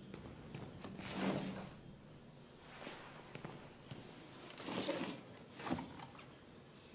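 A wooden piano bench scrapes across a floor.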